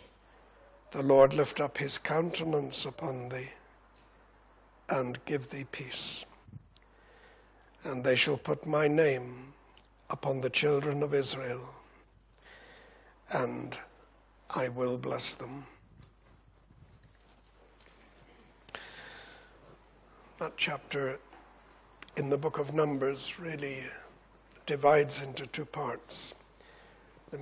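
An older man reads aloud slowly into a microphone, with pauses between phrases.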